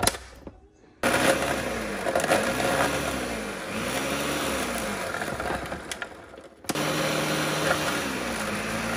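A blender whirs loudly, grinding.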